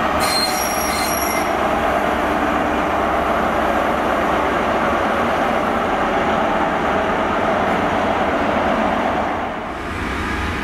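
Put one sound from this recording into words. A passenger train rumbles past along the tracks.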